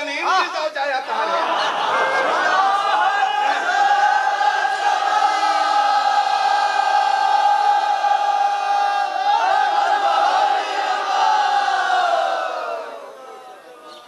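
A man chants a long, drawn-out note through a loudspeaker in an echoing hall.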